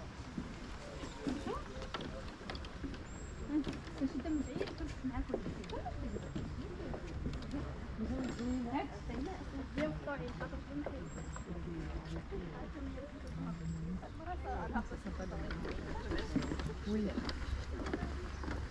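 Several adults talk quietly nearby.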